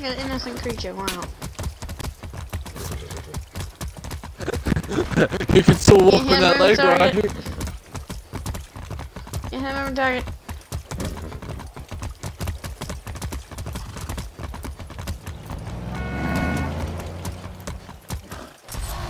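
Horse hooves clop steadily on a paved road.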